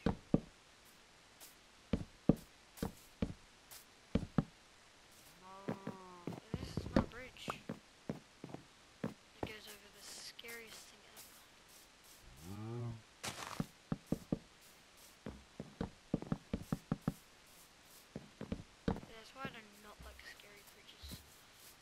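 Footsteps patter across grass.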